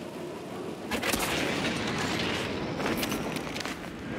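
A body leaps through the air with a rushing whoosh.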